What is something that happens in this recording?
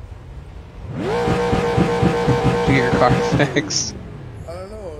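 A race car engine revs up and roars steadily.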